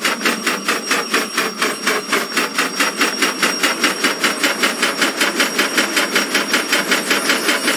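Steel wheels rumble over the rails.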